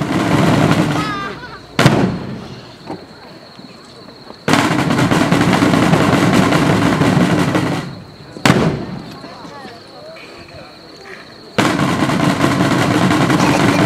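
Drums beat a march outdoors.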